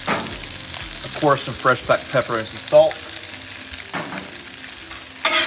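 Vegetables sizzle on a hot griddle.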